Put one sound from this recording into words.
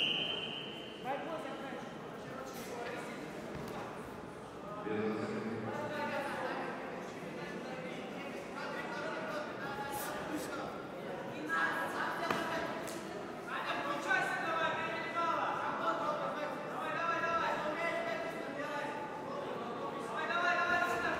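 A crowd of spectators shouts encouragement in a large echoing hall.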